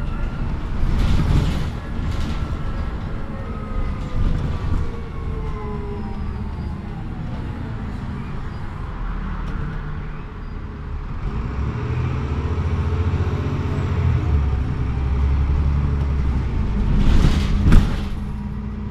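A bus body rattles and clatters over bumps.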